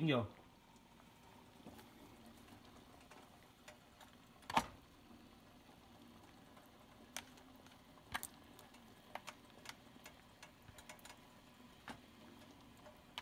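Water boils and bubbles steadily in a pot.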